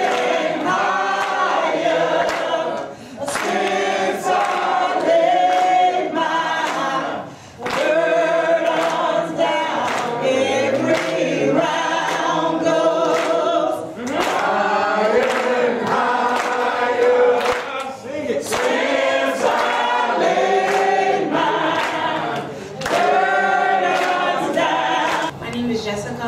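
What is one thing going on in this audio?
People clap their hands along with the singing.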